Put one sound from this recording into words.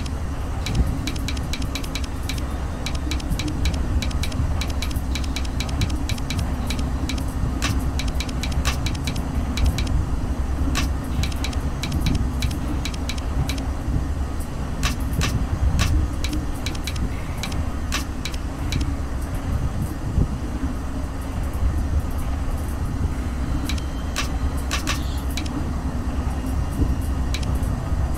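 Metal rings click and ratchet as they turn.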